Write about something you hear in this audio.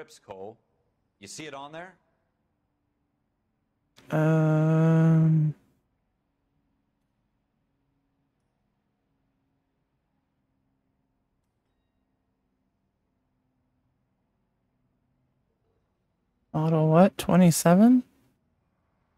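A young man speaks briefly into a microphone, in short bursts.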